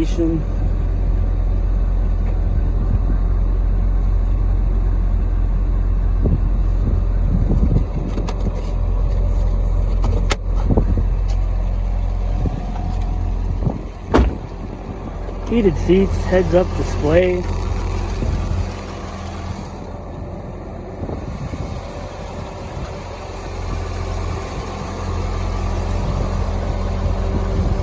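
A car engine idles with a steady, deep rumble.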